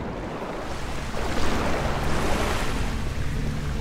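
Water splashes as a swimmer climbs out.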